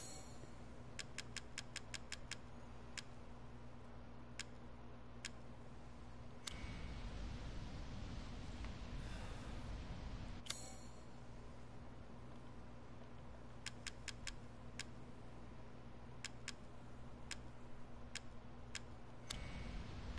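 Short soft clicks tick one after another as a menu is scrolled through.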